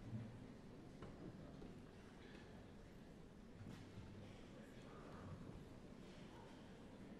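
A large orchestra plays softly in an echoing concert hall.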